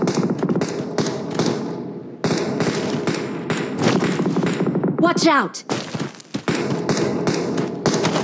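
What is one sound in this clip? Footsteps thud quickly as a figure runs across the ground.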